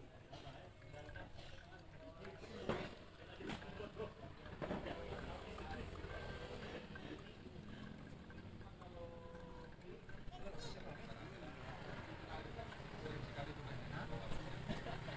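Men talk casually nearby amid a busy background murmur.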